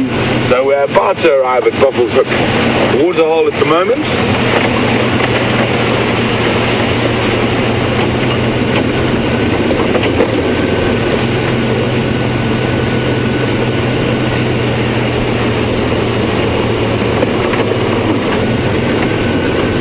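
Tyres crunch and rattle over a rough dirt track.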